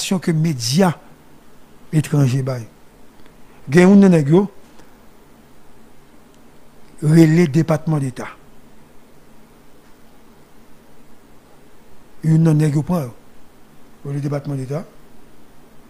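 A man speaks slowly into a close microphone, in short phrases with long pauses.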